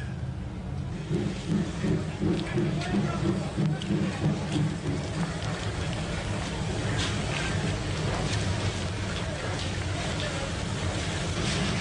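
Footsteps shuffle along a platform.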